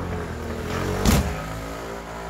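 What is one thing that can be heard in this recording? A fist thuds hard against a punching bag.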